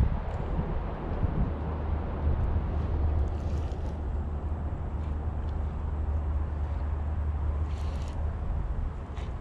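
Wind buffets the microphone steadily outdoors.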